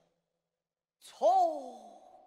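A man sings in a high, drawn-out operatic voice.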